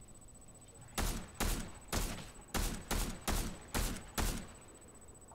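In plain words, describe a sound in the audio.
A rifle fires a quick series of loud shots.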